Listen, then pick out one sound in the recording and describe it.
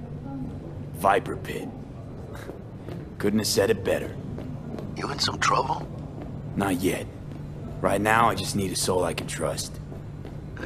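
A young man talks casually and close by, with pauses.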